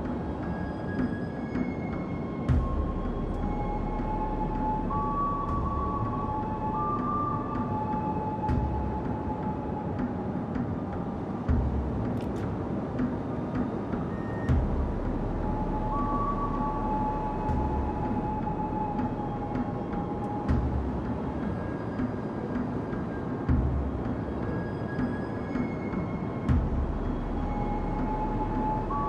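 Water rushes and splashes steadily along a moving ship's hull.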